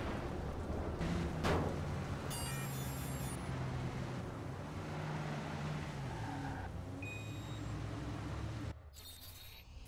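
A car engine hums and revs while driving.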